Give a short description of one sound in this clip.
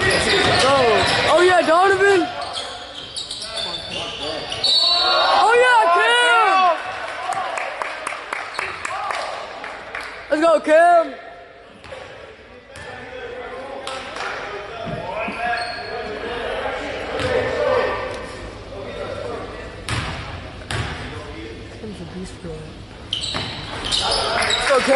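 Players and spectators call out in a large echoing gym.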